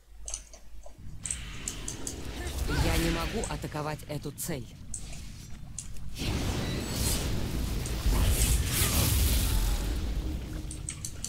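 Fantasy game spells crackle and whoosh.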